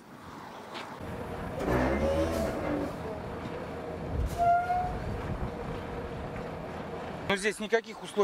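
Truck engines rumble nearby.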